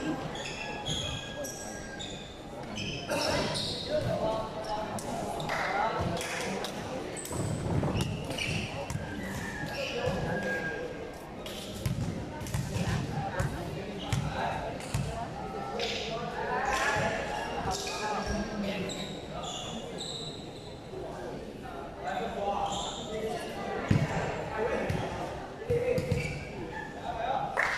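A crowd of young people chatters and shouts in a large echoing hall.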